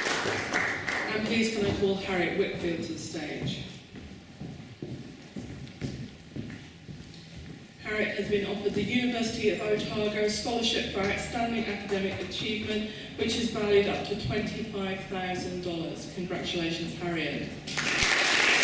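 An older woman reads out calmly into a microphone.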